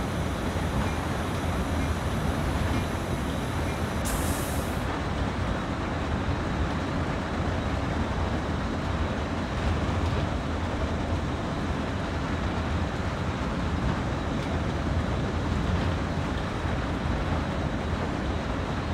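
Train wheels roll and clatter over the rails.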